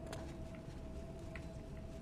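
Torches crackle as they burn.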